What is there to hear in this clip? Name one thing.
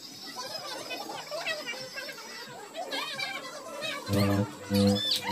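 A crowd of women and children chatter nearby.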